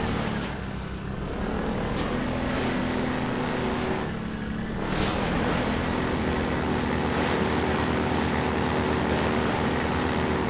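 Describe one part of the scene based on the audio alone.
Water splashes under tyres.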